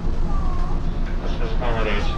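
A man speaks into a handheld microphone, heard over a loudspeaker.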